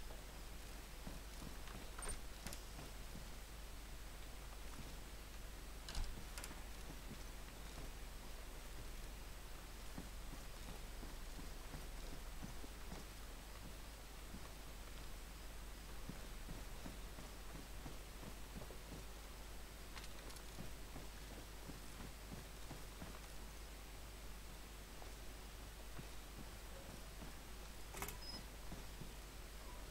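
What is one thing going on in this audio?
Footsteps walk on a hard floor indoors.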